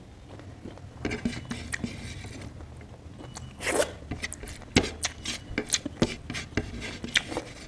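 Fingers scrape and tap crumbs on a plate.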